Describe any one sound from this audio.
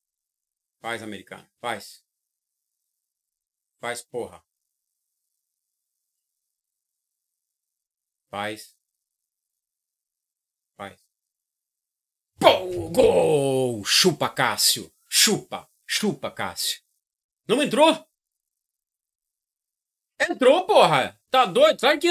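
A man speaks with animation into a microphone close by, in short bursts.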